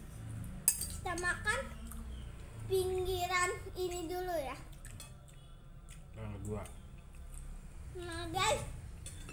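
A young girl speaks in a high, lively voice close by.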